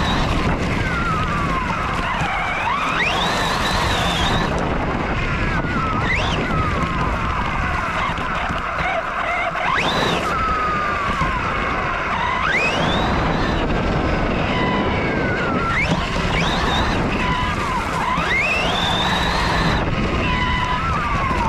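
An electric RC truck's brushless motor whines, rising and falling in pitch as it accelerates.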